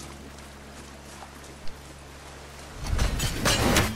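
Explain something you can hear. Water splashes as a man wades through a shallow stream.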